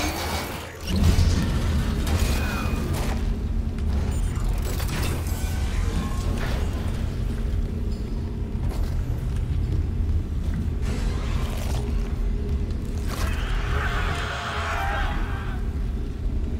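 Heavy boots clank on a metal floor as someone walks slowly.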